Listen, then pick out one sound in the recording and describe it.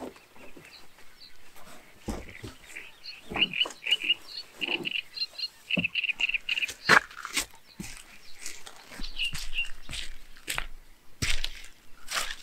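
Plastic pipes knock and scrape against each other.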